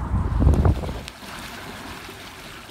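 Water laps softly against the bank.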